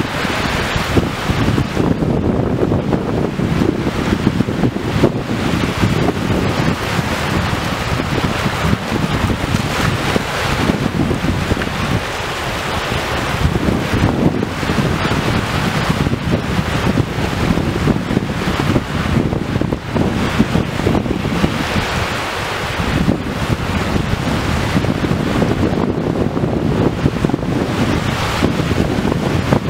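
Small waves wash in and break on a shore.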